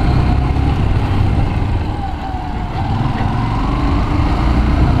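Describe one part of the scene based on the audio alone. A motorcycle engine hums steadily while riding along a street.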